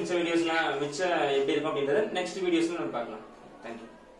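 A young man speaks calmly and closely into a microphone.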